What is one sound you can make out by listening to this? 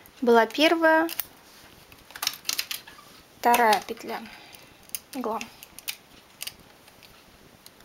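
Metal needles click softly.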